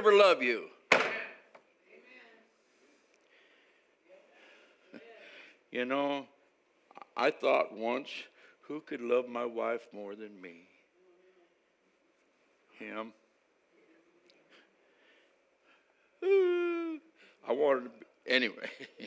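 An elderly man preaches with animation through a microphone in an echoing hall, pausing often.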